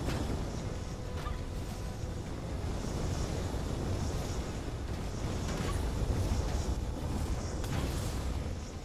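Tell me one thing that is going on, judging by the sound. Spells burst with sharp whooshing blasts.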